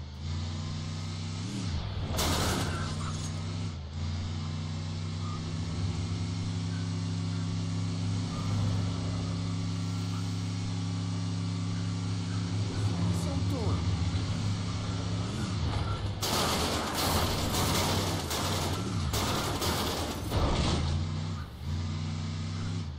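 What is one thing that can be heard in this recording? A game vehicle's engine hums steadily.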